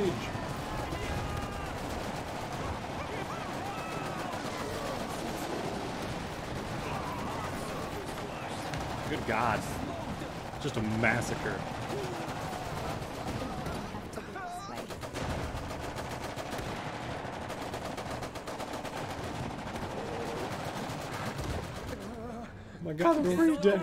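Gunfire crackles steadily throughout a battle.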